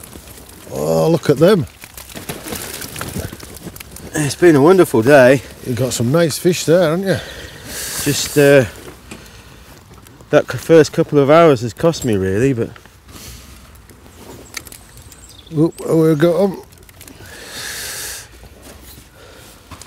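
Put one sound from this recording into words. A fishing net rustles as it is handled.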